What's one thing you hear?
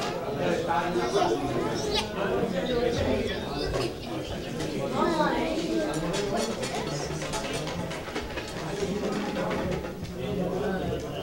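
A middle-aged man speaks into a microphone in an echoing hall.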